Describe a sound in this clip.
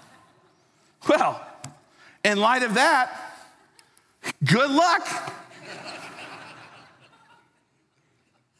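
A man speaks with animation into a microphone in a large echoing hall.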